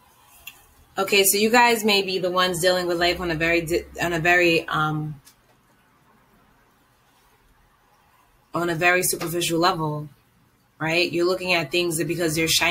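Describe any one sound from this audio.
A young woman speaks close to a microphone, calmly, in short bursts.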